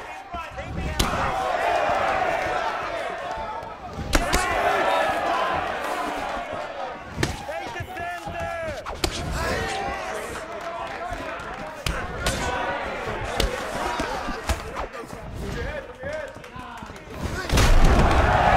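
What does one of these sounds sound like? Punches and kicks thud against bodies.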